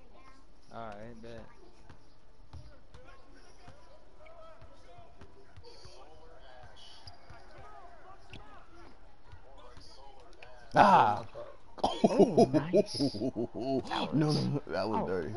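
Sneakers squeak on a wooden basketball court.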